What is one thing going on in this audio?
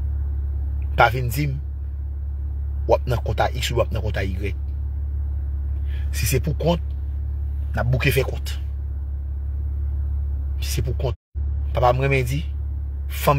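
A man speaks close up in short bursts, with animation.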